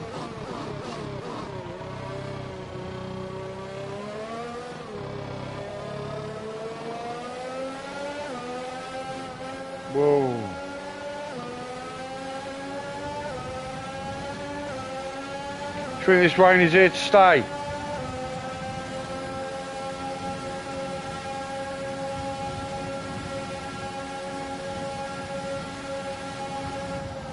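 A racing car engine revs high, rising and dropping through the gears.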